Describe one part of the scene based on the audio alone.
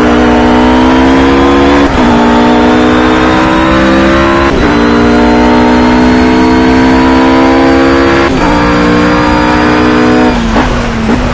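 A GT race car engine roars at full throttle, shifting up through the gears.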